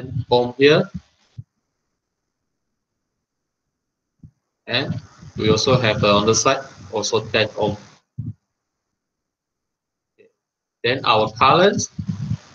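A young man speaks calmly over an online call, explaining in short bursts.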